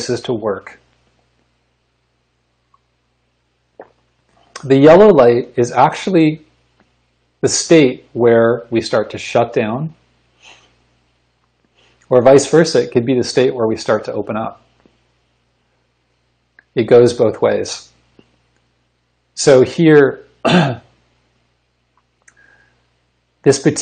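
A man speaks calmly and clearly into a microphone, close by, in pauses.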